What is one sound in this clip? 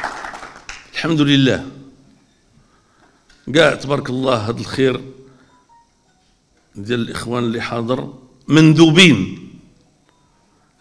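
An elderly man speaks forcefully into a microphone, pausing between phrases.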